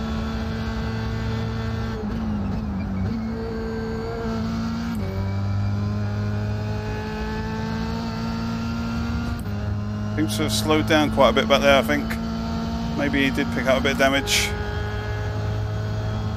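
A racing car engine whines at high revs, dropping in pitch with each gear change.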